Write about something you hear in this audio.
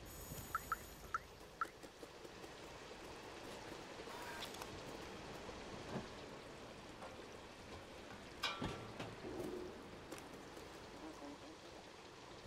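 A cat's paws patter softly on wooden boards.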